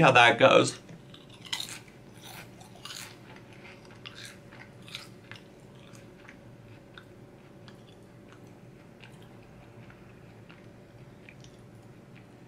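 A man chews food with soft crunching.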